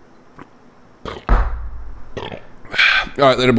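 A young man coughs harshly close to a microphone.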